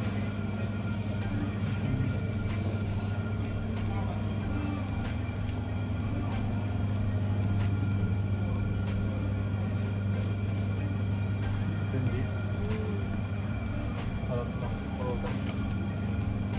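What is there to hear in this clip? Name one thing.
Freezer units hum steadily and low.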